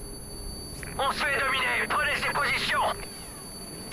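A rifle fires a rapid burst.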